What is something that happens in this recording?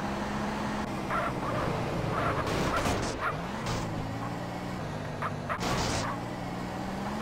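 Tyres screech as a car takes a sharp turn.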